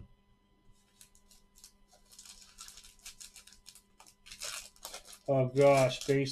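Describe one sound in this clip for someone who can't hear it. A foil wrapper crinkles and tears as a pack is opened.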